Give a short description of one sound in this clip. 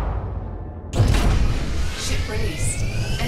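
A loud whoosh of thrust comes in near the end.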